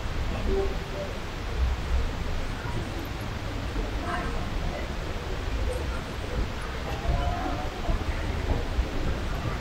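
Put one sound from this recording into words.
Suitcase wheels roll over a stone floor.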